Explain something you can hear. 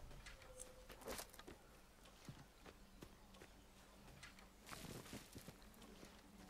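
Footsteps rustle through dense grass and undergrowth.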